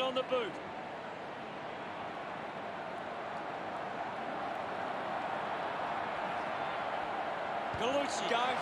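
A large stadium crowd roars steadily, growing slowly louder.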